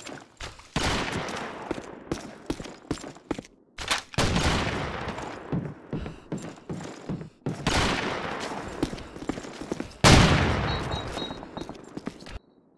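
A shotgun fires single blasts, each with a booming echo.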